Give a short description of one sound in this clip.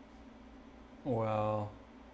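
A second man speaks a short drawn-out word close by.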